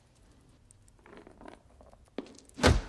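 A wooden spool rolls across the floor.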